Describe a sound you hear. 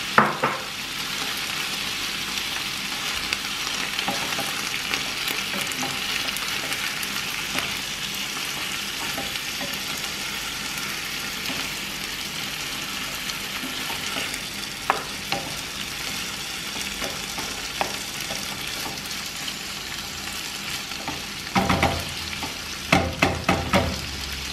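A wooden spoon scrapes and knocks against a metal pan.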